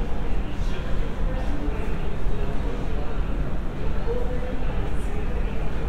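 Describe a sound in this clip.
An escalator hums steadily in a large echoing hall.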